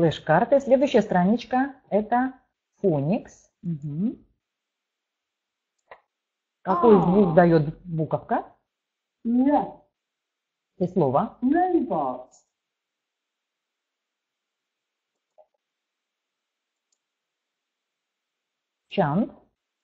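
A woman speaks calmly through an online call microphone, pausing often.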